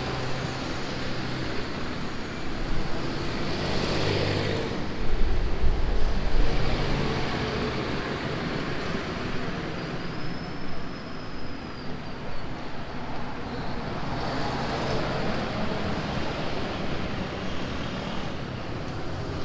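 Traffic rumbles past on a busy street.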